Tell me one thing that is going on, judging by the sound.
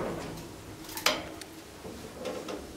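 A heavy door is pushed open with a clunk.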